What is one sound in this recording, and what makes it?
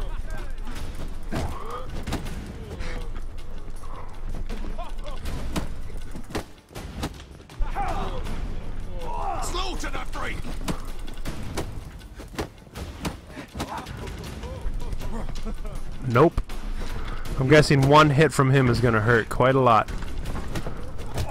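Fists thud as men brawl.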